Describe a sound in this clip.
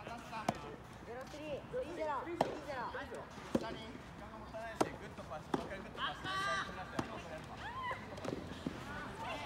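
Tennis balls are struck with rackets with sharp pops.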